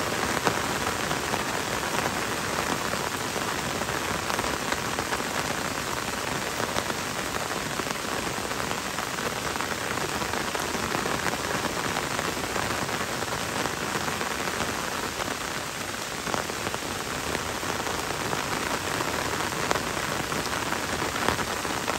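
Gentle rain patters on leaves and a wet road outdoors.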